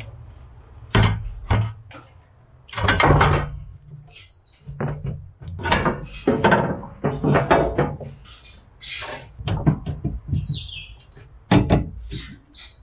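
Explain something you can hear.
Plastic parts knock and clack.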